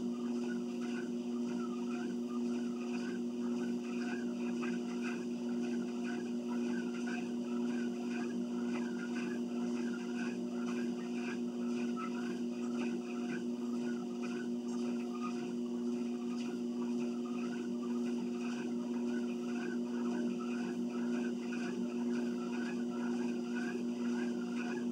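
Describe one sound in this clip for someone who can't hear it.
An electric treadmill motor hums steadily.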